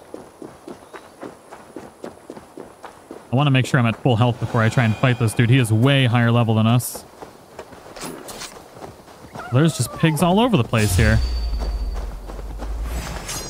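Footsteps crunch over a path and through grass.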